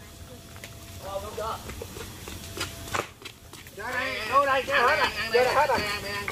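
A man shouts excitedly outdoors.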